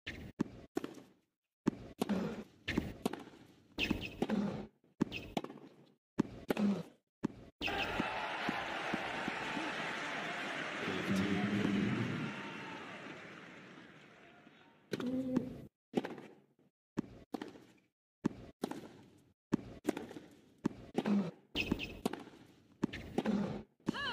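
A tennis ball is struck sharply back and forth with rackets.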